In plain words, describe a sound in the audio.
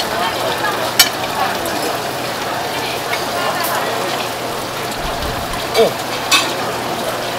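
A knife taps against a wooden board.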